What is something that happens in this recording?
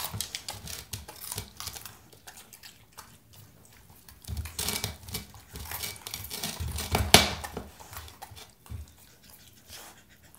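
A dog crunches and chews vegetables close by.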